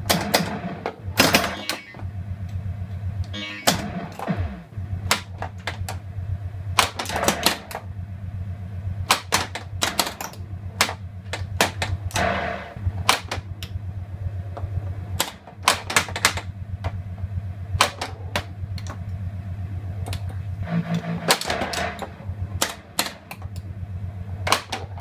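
A pinball machine plays a steady electronic hum and music.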